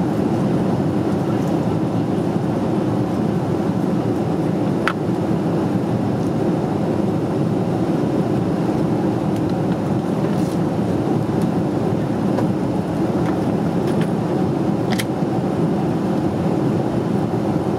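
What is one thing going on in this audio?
A jet airliner's engines roar with a steady, deep rumble inside the cabin.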